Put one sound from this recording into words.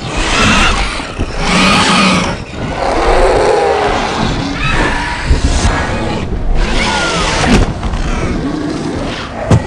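Winged reptiles screech loudly.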